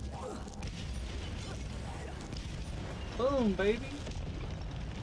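A magic spell crackles and bursts.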